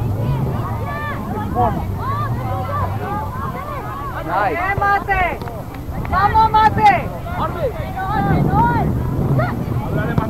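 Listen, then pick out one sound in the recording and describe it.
Adult spectators on a sideline call out and chatter outdoors, far off.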